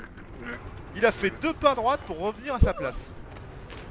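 A man groans and gasps while being choked.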